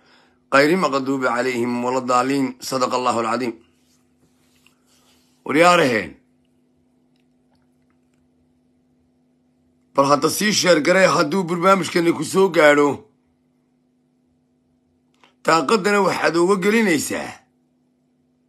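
A man speaks with animation close to a phone microphone, in short bursts with pauses.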